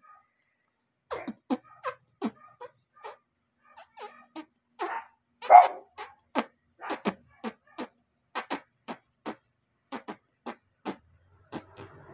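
A man makes loud kissing and smacking sounds, close by.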